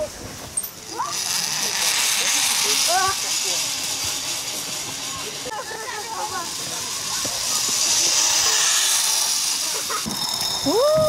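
A zip line trolley whirs along a steel cable.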